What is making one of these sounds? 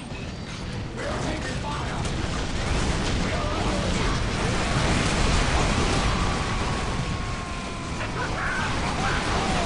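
Guns fire in rapid bursts during a noisy battle.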